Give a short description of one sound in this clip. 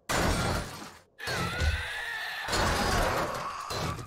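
A pickaxe strikes a metal door with heavy clangs.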